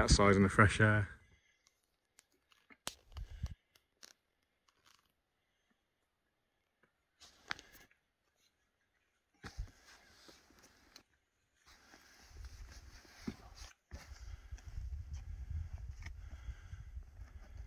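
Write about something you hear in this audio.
Boots scrape and crunch on loose rock.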